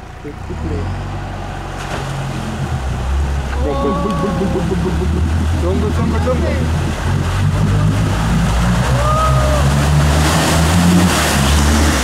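Muddy water splashes and churns around a vehicle's wheels.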